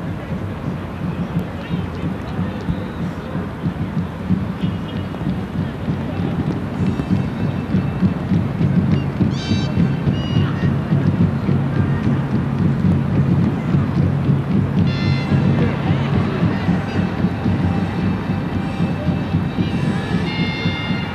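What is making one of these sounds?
A stadium crowd murmurs and cheers in a large open space.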